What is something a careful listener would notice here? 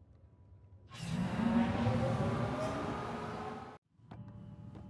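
A spacecraft roars past with a rushing whoosh.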